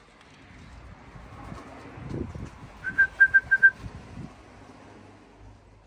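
A pigeon's wings clap and flutter as it flies overhead.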